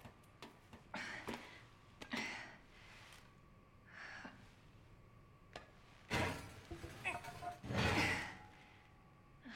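A young woman grunts and gasps with effort.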